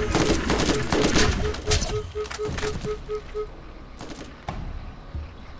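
Gunshots bang loudly in quick succession, then come more sparsely.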